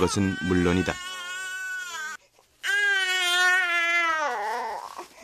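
A baby cries and wails loudly up close.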